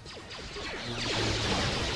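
Blaster shots fire repeatedly.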